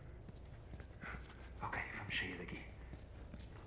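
A man speaks quietly through a gas mask.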